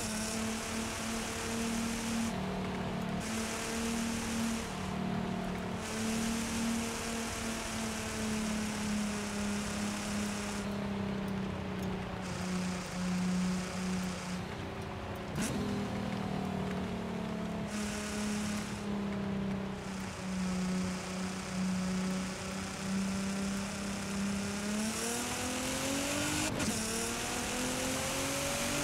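A sports car engine hums steadily, then revs up as it speeds away.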